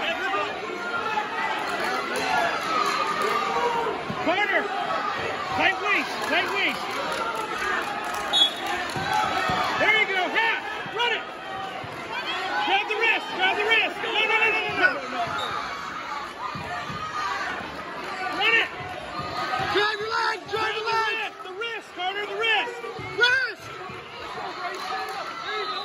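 A man referee calls out loudly to the wrestlers.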